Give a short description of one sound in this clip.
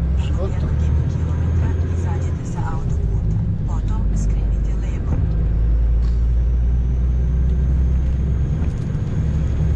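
Windscreen wipers swish across the glass.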